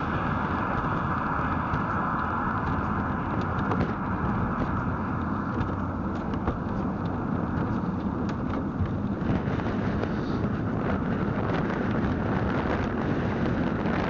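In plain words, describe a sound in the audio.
Tyres roll on asphalt with a steady road noise.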